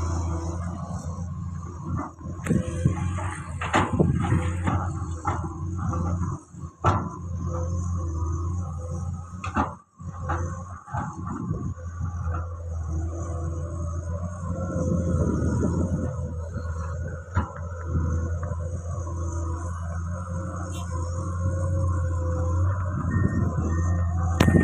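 A small fire crackles close by.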